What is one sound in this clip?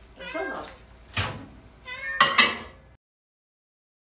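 A cupboard door bangs shut.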